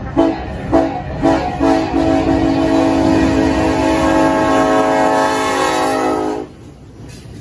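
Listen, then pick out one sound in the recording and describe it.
A train horn blasts loudly and close by.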